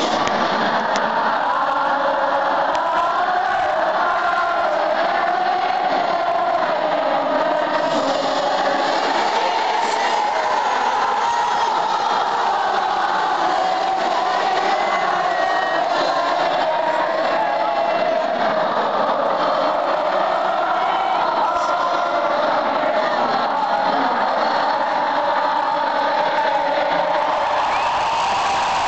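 Singers perform through loud stadium speakers.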